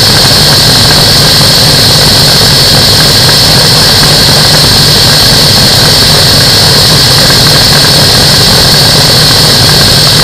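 Wind roars steadily past in flight.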